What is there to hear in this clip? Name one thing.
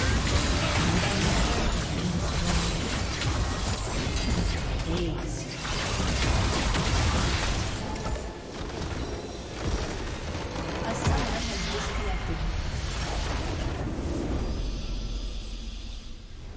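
Game spell effects crash and whoosh loudly in a fight.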